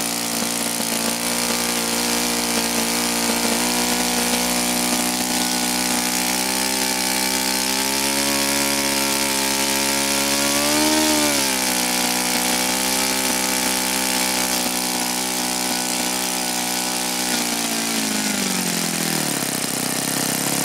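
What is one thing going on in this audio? A small model engine screams loudly at high speed outdoors.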